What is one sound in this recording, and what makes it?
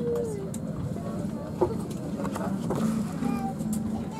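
A stiff paper menu rustles as its page is turned.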